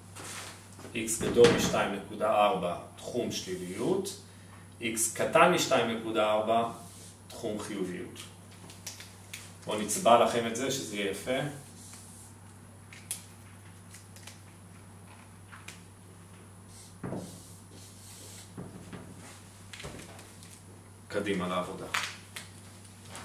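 A man speaks calmly and clearly close by, in short bursts with pauses.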